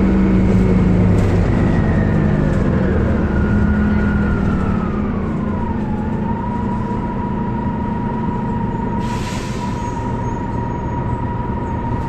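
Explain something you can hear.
A high whine from a bus drops in pitch, then holds steady.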